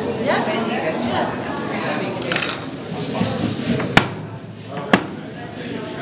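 An ink roller rolls across a sticky slab.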